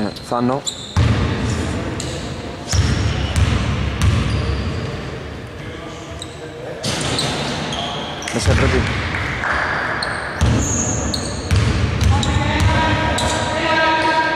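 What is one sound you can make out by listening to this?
A basketball bounces on a hard floor in a large echoing hall.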